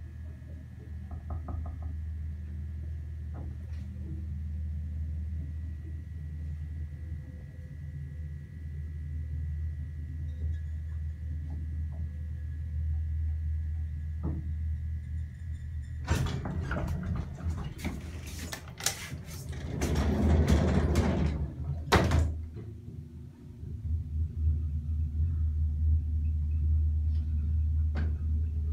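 A lift hums low and steadily.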